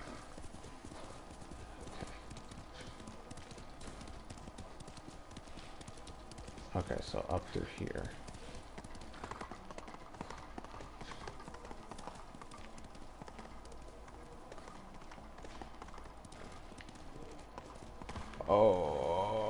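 Horse hooves clop steadily along a path.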